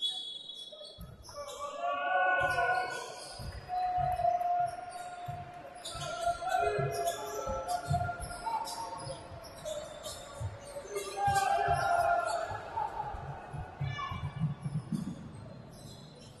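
A basketball bounces with dull thuds on the court.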